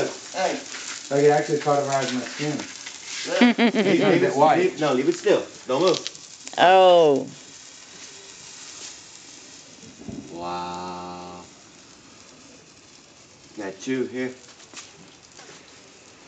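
A sparkler fizzes and crackles.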